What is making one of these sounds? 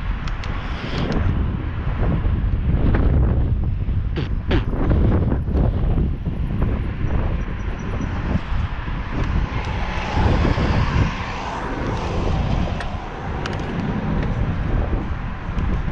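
Wind rushes and buffets loudly past the microphone.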